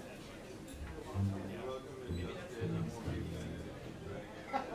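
A double bass is plucked with a few low notes.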